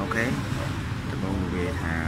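Fingers tap keys on a laptop keyboard.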